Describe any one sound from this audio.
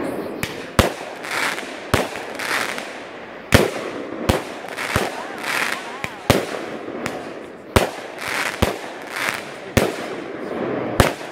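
Fireworks burst with loud sharp bangs.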